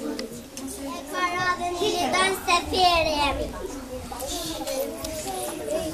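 A young girl reads out in a high voice.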